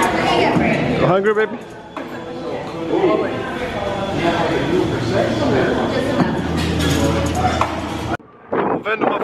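Many people chatter in a busy room.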